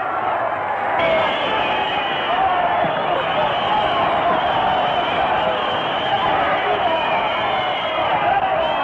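A large crowd roars in an echoing arena.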